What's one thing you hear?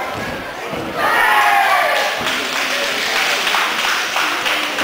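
Children cheer and shout loudly.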